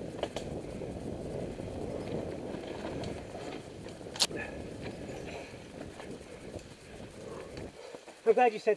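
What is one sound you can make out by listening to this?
Bicycle tyres rumble and rattle over a rough dirt trail.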